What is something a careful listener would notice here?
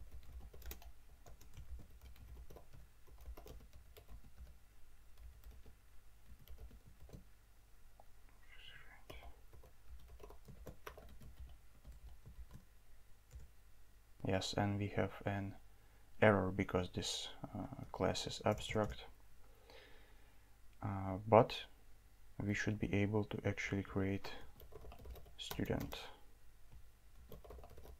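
Keyboard keys click quickly as someone types.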